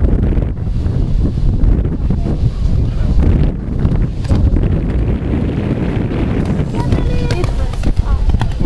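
A horse's hooves thud on soft sand as it canters.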